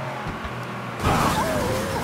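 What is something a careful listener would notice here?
Tyres screech and skid on the road.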